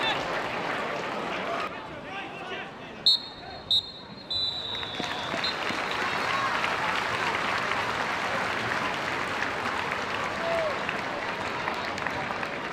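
A large crowd murmurs and calls out outdoors.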